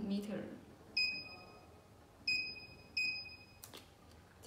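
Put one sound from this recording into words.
An electronic device beeps several times.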